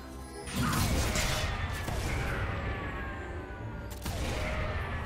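Magic spells whoosh and crackle in a fast video game battle.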